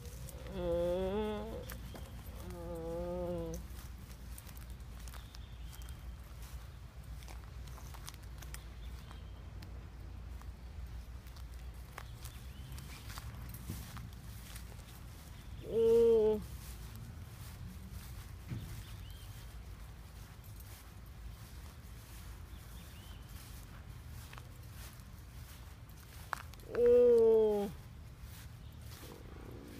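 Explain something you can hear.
Wind blows outdoors and rustles palm fronds.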